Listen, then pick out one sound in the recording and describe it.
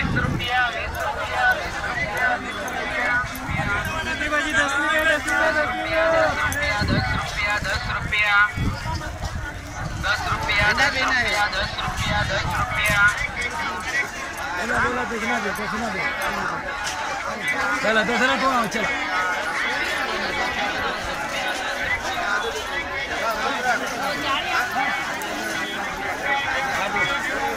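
A busy outdoor crowd chatters all around.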